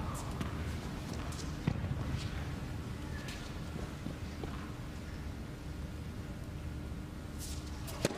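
A tennis ball bounces on a hard court before a serve.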